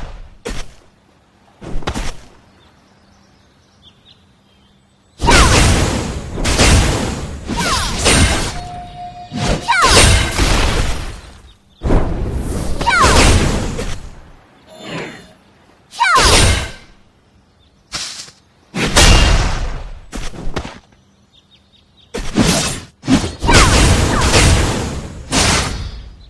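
Swords slash and magic blasts burst in loud, sudden bursts.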